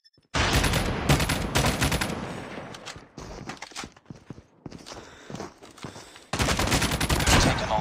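Rapid automatic gunfire rattles in loud bursts.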